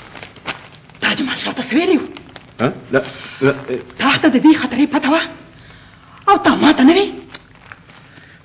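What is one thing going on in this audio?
An elderly woman speaks with emotion, close by.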